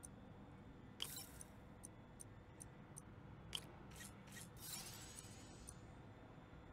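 A short electronic chime sounds as a part snaps into place.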